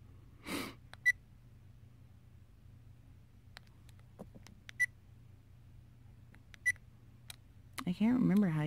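Small buttons click softly under fingertips.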